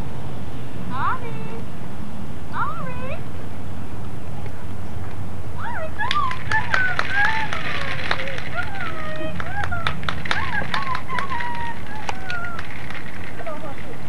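A woman speaks playfully in a high voice, close by.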